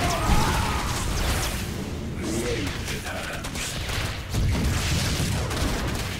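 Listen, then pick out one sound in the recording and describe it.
Energy blasts zap and crackle.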